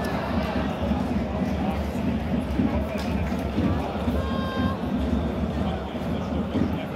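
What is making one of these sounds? A large stadium crowd chants and cheers steadily outdoors.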